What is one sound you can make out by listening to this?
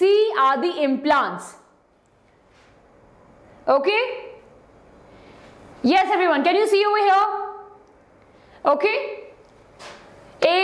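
A young woman speaks clearly and with animation into a close microphone, in short bursts.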